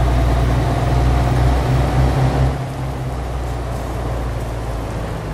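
A truck engine hums steadily, then eases off.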